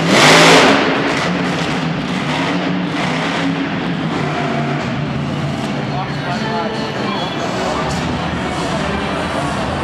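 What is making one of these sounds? A large crowd cheers and murmurs throughout.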